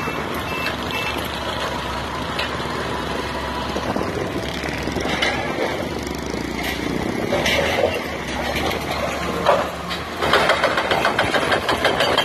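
An excavator engine rumbles nearby.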